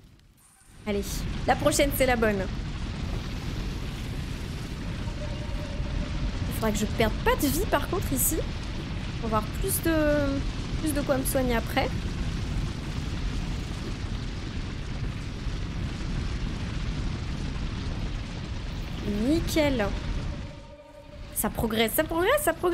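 A young woman talks with animation through a close microphone.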